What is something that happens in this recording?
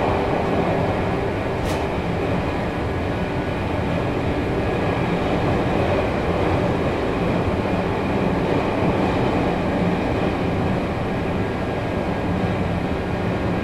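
An electric train's motor hums and rumbles steadily as it runs along the tracks.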